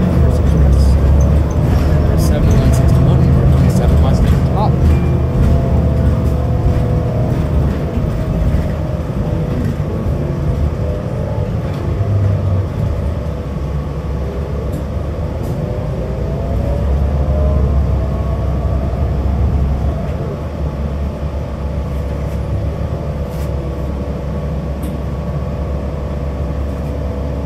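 The bus rattles and creaks as it rolls along.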